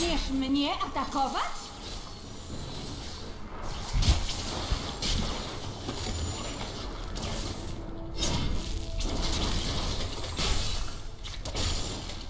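Game spells crackle and blast in quick bursts.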